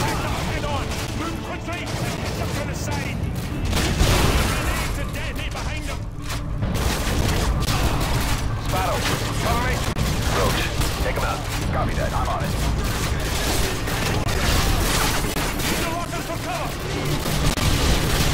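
Rifles fire in rapid bursts of gunfire.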